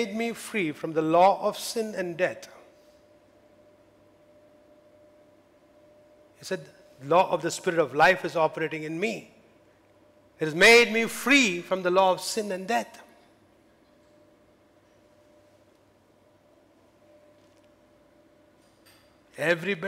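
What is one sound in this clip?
A middle-aged man speaks with animation through a microphone, in bursts with long pauses.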